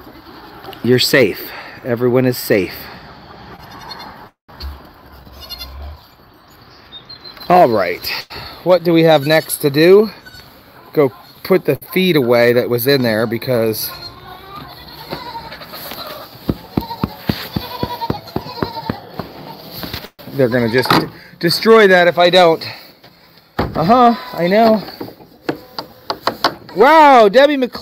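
Goats bleat loudly close by.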